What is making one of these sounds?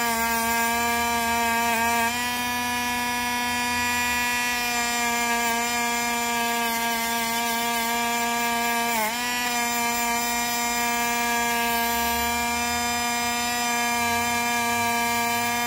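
A cutting disc grinds against a metal coin.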